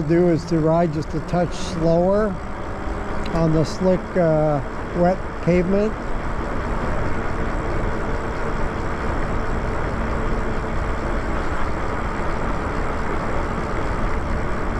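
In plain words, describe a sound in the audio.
Wind rushes past steadily during a ride outdoors.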